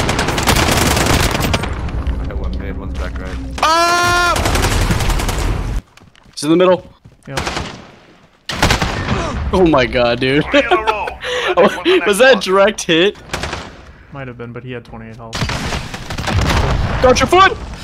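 Gunshots fire in bursts.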